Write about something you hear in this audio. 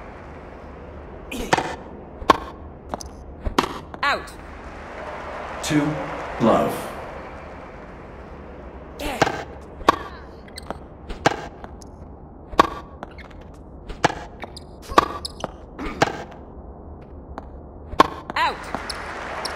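A tennis racket hits a ball again and again in a game.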